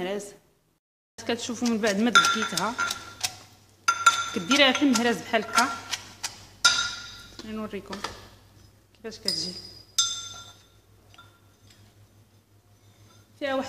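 A pestle knocks and grinds in a metal mortar.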